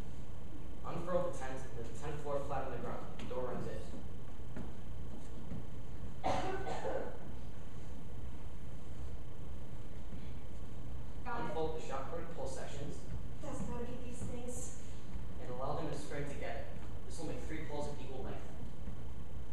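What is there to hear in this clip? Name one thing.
A young woman speaks with expression, a few steps away.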